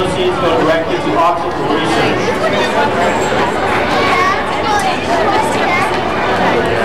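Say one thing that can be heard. A crowd of men and women chatters nearby in a large echoing hall.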